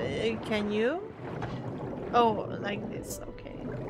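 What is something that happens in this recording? A young woman speaks playfully into a microphone, in short bursts.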